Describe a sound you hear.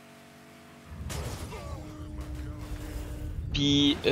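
A car crashes with a loud rumbling impact.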